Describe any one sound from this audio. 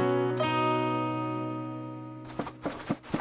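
An acoustic guitar chord rings out and fades.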